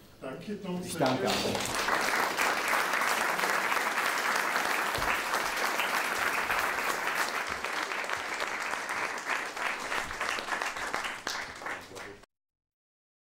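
An audience applauds steadily, then the sound cuts off.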